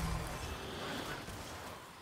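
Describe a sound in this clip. Fire bursts with a crackling whoosh.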